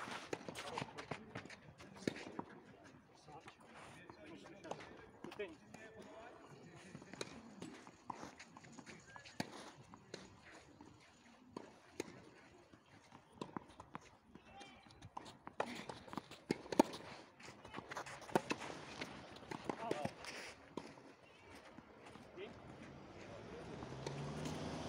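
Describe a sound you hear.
Tennis balls are struck with rackets, sharp pops again and again.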